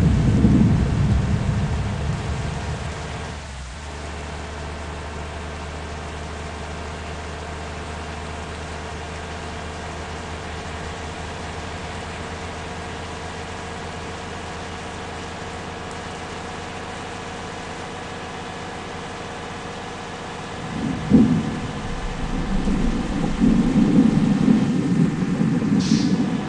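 A bus engine hums steadily as it speeds along.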